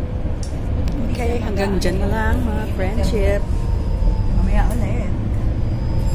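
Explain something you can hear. A middle-aged woman talks close to a phone microphone.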